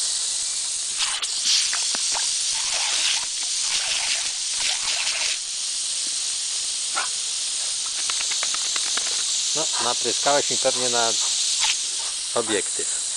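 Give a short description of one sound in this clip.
A dog snaps and splashes at the water spray.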